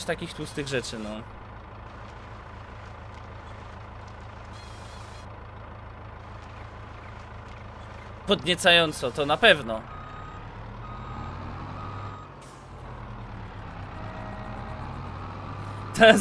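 A heavy forestry machine's engine hums steadily.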